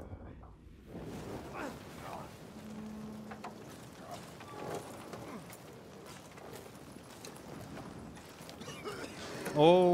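A fire crackles and roars.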